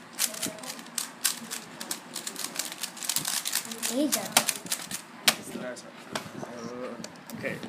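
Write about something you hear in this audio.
Plastic puzzle cubes click and clatter rapidly as they are twisted.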